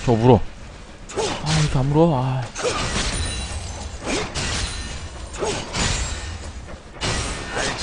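Magic spells and weapon hits from a fantasy battle video game crackle and burst.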